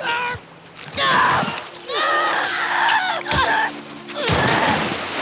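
A young woman screams and grunts in strain.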